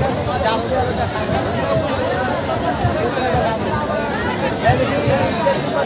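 A large outdoor crowd of men and women chatters loudly all around.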